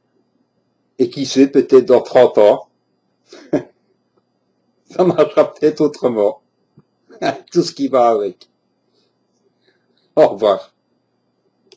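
A middle-aged man speaks close to a microphone in short bursts.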